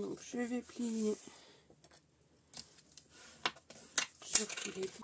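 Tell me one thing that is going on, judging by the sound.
Hands press and slide over stiff card, making soft rustling and tapping sounds.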